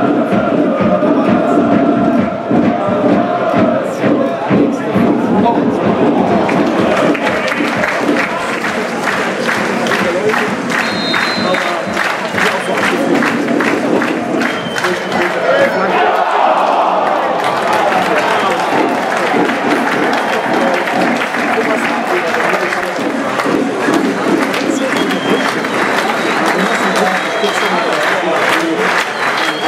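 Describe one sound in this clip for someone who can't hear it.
A crowd of fans chants and drums steadily in a stadium.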